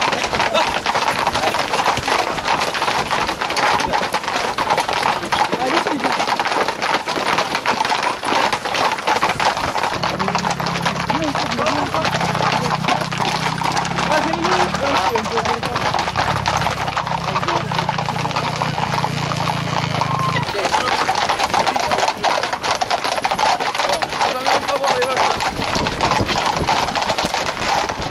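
Horses' hooves clatter steadily on a paved road.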